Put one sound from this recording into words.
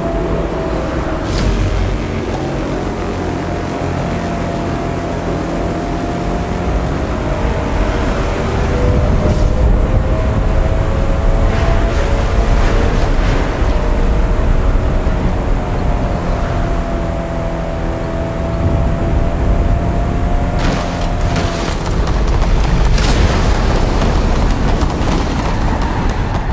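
A racing car engine roars at high speed, its pitch rising and falling as the gears shift.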